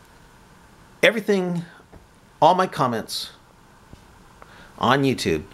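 A middle-aged man speaks calmly and close by, in short bursts.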